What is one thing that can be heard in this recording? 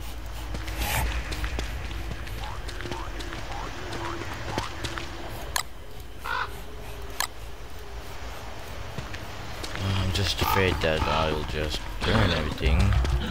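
Soft footsteps patter quickly across sand.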